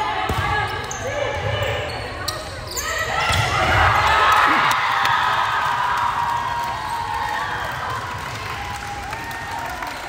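A crowd cheers loudly in an echoing gym and then fades.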